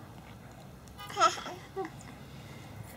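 A toddler giggles close by.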